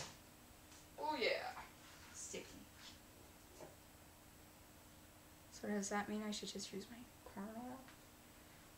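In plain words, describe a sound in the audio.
A young woman speaks close by in short bursts.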